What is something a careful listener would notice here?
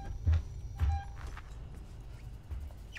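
A handheld motion tracker beeps softly.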